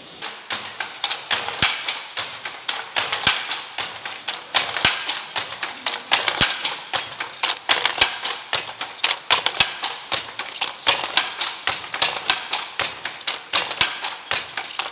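A wooden handloom clacks and thumps in a rapid, steady rhythm.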